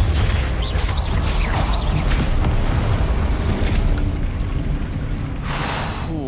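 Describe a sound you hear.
Magic blasts crackle and boom loudly.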